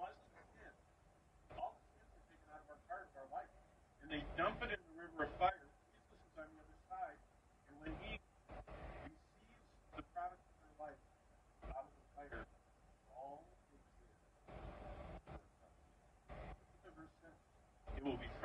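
An older man talks calmly nearby.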